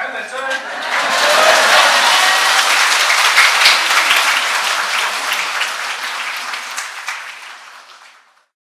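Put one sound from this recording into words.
A large crowd chatters loudly in an echoing hall.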